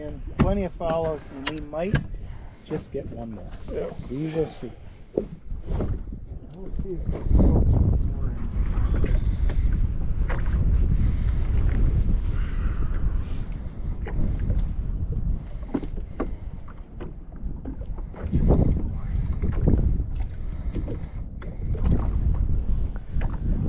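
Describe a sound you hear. Water slaps against a boat's hull.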